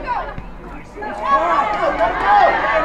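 A crowd of spectators cheers and shouts loudly.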